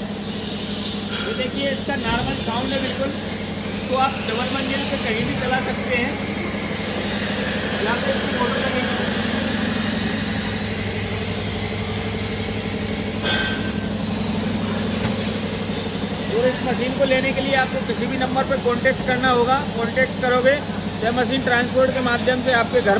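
A middle-aged man talks with animation close by.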